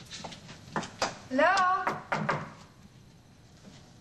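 A door opens and shuts with a thump.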